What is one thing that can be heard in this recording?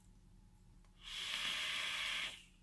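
An electronic vaporizer hisses loudly as a man draws on it.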